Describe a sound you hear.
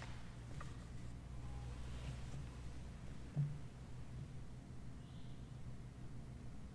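An elderly man speaks calmly in a large echoing hall.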